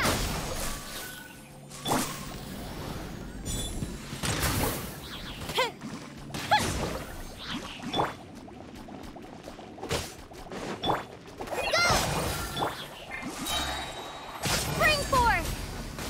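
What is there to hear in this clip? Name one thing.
Magic attacks burst and crackle in quick, sharp blasts.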